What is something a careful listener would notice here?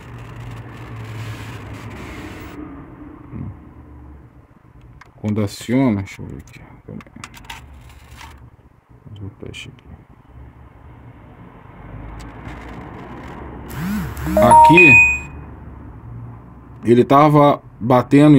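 Metal test probes tap lightly against a circuit board.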